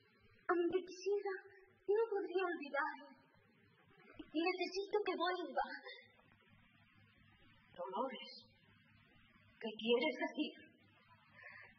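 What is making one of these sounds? An elderly woman speaks softly and earnestly up close.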